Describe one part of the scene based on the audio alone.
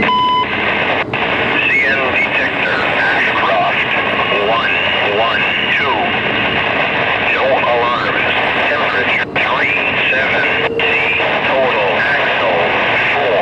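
Train wheels squeal in high wavering tones.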